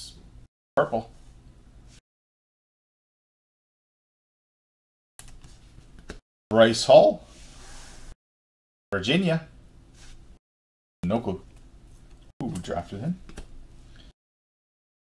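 A man talks with animation into a microphone, in short bursts.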